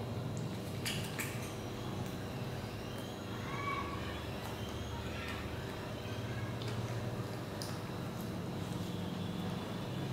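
A young monkey chews and smacks on a piece of fruit close by.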